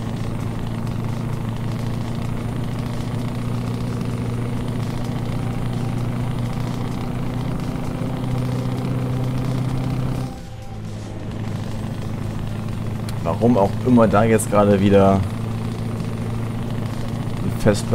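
A heavy truck engine drones steadily, dipping briefly during a gear change.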